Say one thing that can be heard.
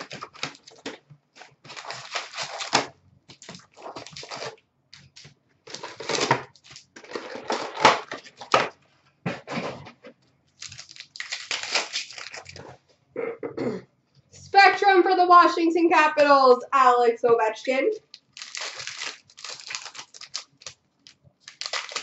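Hands pick up and set down small cardboard card boxes on a glass counter.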